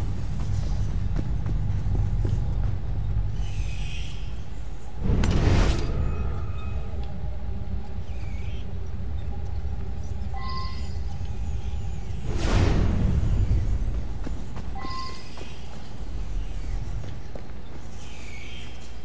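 Footsteps sound on a stone floor.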